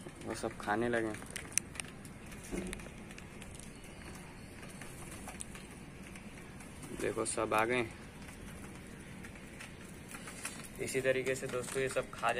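Pigeons coo.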